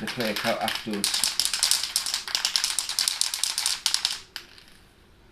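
A man shakes a spray can, its ball rattling.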